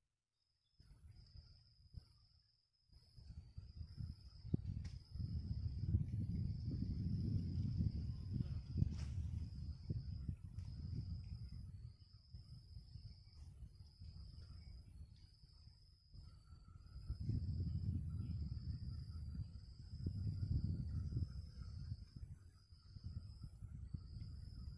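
Wind rumbles in gusts outdoors.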